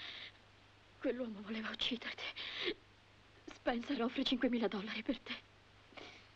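A young woman speaks softly up close.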